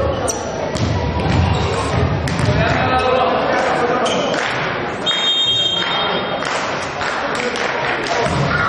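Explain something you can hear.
A volleyball is struck with sharp slaps in an echoing sports hall.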